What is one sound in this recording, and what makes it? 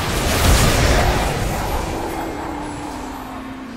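A game tower fires booming shots.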